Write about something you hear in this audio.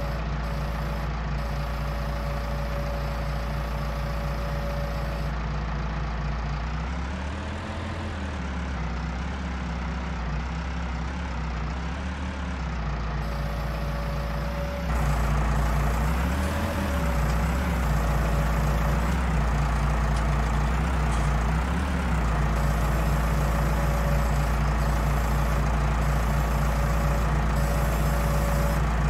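A tractor engine hums steadily and revs up and down.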